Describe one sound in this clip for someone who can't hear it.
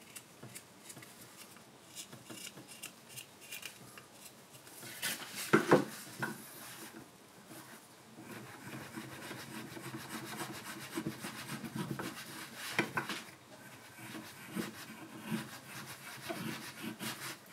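A carving knife shaves and scrapes thin curls from wood in short strokes.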